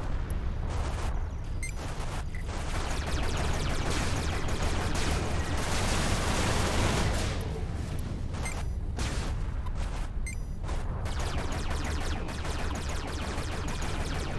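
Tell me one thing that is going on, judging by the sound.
Laser shots zap and crackle in a video game.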